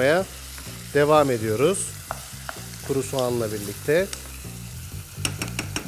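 A wooden spoon stirs food in a pot.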